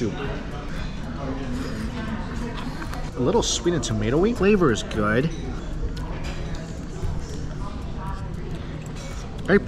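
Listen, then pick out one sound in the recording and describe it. A man slurps noodles.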